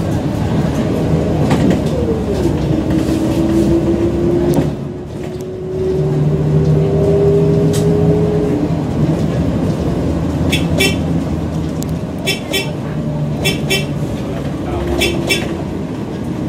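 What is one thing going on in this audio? Traffic rumbles steadily along a busy street.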